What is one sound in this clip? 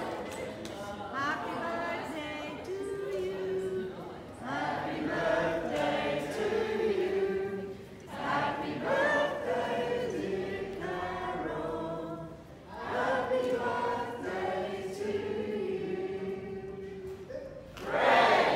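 An elderly woman speaks warmly into the room.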